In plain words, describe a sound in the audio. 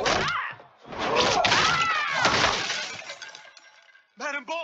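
A man screams as he falls.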